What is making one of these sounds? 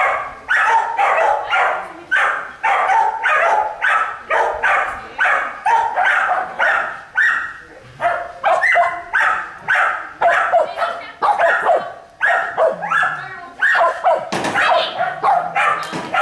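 A dog barks rapidly and repeatedly, close by.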